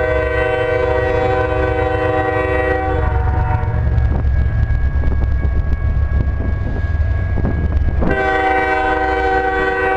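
A train rumbles and roars as it approaches.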